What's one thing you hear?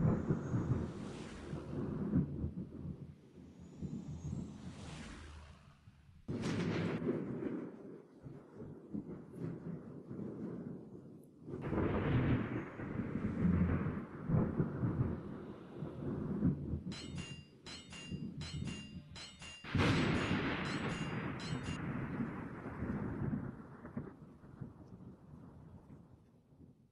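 Waves rush steadily against a ship's hull.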